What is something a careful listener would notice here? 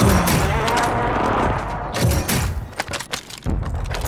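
A gun clicks and rattles as a weapon is swapped.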